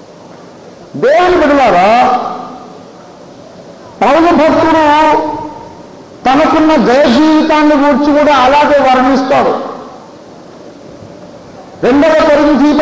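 A man speaks loudly and with emphasis through a microphone, in bursts.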